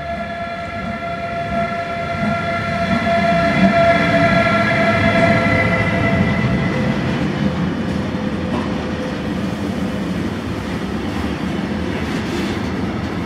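Freight wagons rumble and clatter past on the rails.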